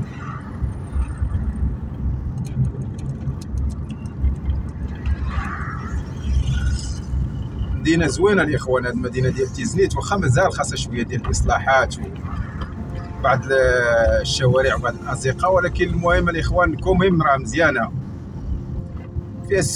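A car engine hums steadily with tyres rolling on the road.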